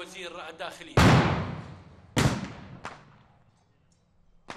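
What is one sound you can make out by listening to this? A stun grenade explodes with a loud bang and a ringing echo.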